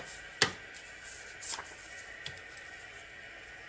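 Playing cards rustle and tap against a table.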